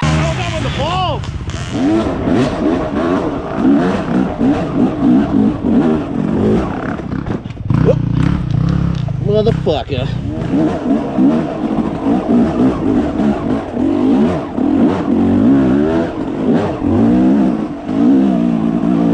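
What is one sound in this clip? A dirt bike revs as it rides along a dirt trail.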